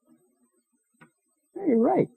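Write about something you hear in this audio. A switch clicks on a machine.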